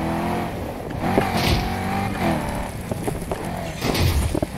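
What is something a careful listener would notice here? Branches and bushes crash against a car.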